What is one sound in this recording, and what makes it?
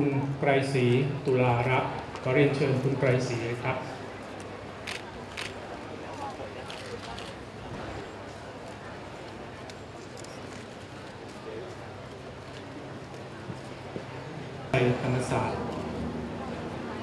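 A man announces calmly over a loudspeaker outdoors.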